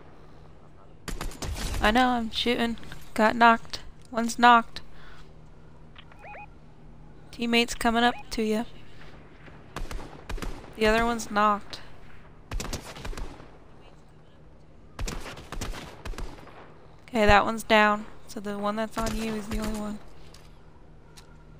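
Scoped assault rifle shots crack in a video game.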